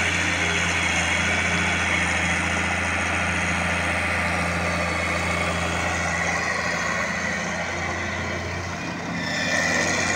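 Tractor diesel engines idle with a steady low rumble.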